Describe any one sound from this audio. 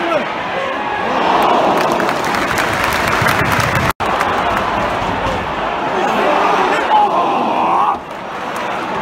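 A stadium crowd cheers in a loud swell.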